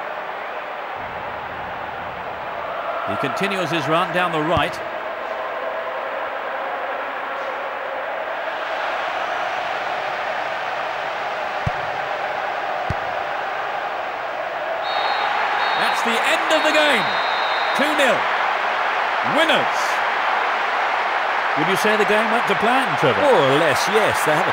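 A stadium crowd roars steadily.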